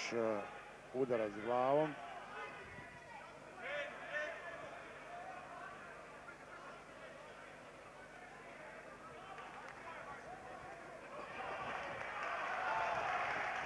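A large indoor crowd murmurs and cheers.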